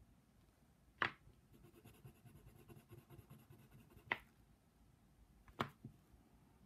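A pencil taps sharply against paper.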